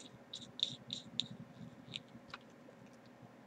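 Small plastic parts click and tap as hands handle test leads.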